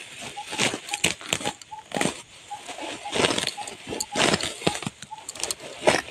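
Grass stalks rustle as they are pulled up by hand.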